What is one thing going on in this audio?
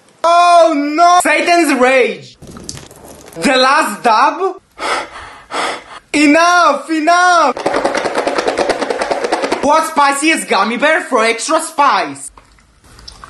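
A young man talks loudly and with animation, close by, his voice rising and falling in pitch.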